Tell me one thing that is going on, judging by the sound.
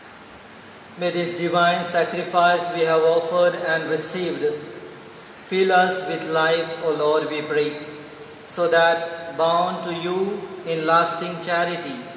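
A man chants in a sung voice through a microphone in an echoing room.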